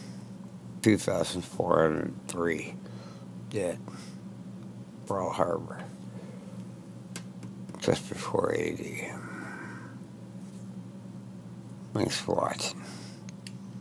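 An elderly man talks calmly into a headset microphone, close up, in short bursts.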